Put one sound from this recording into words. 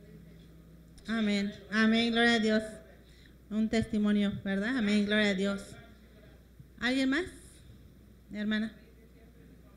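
A young woman speaks loudly into a microphone, heard through a loudspeaker in an echoing room.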